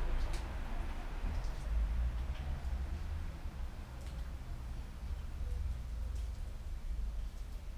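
Metal tools click and tap against a bicycle frame.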